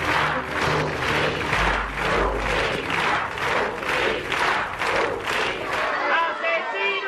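A large crowd chants in a steady rhythm outdoors.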